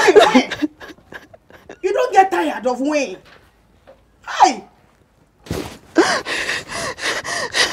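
A young woman sobs and cries close by.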